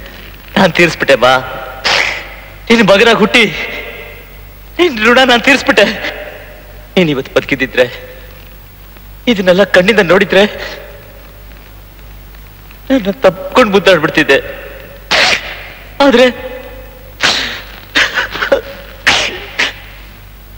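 A man speaks in a strained, anguished voice, close by.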